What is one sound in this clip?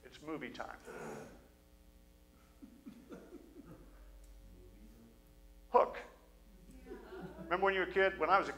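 A middle-aged man speaks calmly and then with animation through a microphone in a reverberant hall.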